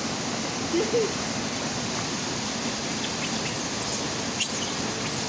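Water rushes and splashes steadily nearby.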